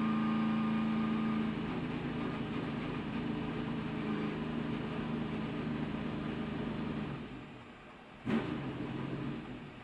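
A race car engine roars loudly at high speed.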